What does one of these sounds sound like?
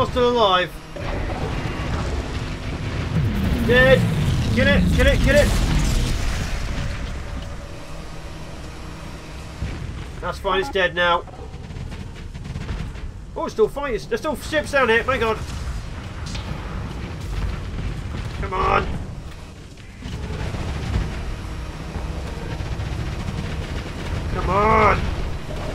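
Laser guns fire in short bursts.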